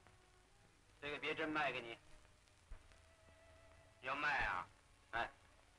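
A man speaks briefly and quietly.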